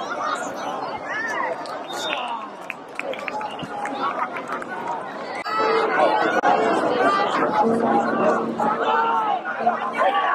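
A crowd of spectators cheers and shouts in an open-air stadium, growing louder partway through.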